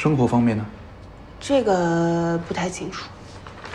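A young woman speaks nearby in a calm, questioning voice.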